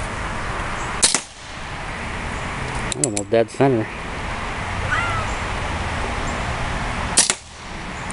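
A revolver fires a sharp, loud shot outdoors.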